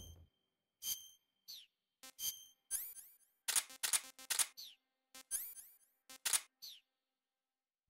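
Short electronic menu beeps and chimes sound in quick succession.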